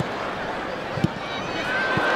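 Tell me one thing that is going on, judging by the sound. A ball is struck with a thud.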